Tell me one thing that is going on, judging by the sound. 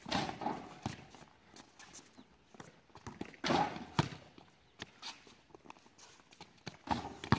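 Basketballs bounce on a hard outdoor court.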